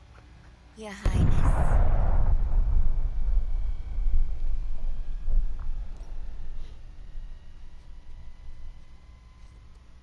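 A huge explosion booms and rumbles for a long time, slowly fading.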